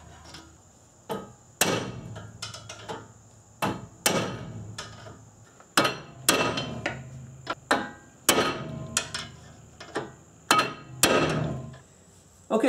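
A hammer strikes a metal bar with loud ringing clangs.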